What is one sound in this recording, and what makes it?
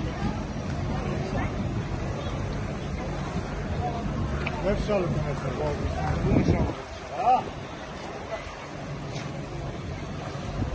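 Water flows and ripples outdoors.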